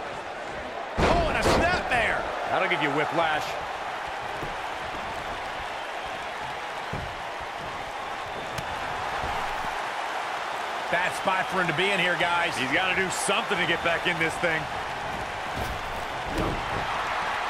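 Heavy bodies thud hard onto a wrestling ring floor.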